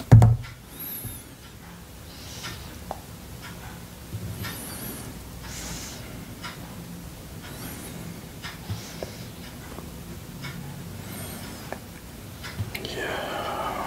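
A knife scrapes and taps on a stone slab.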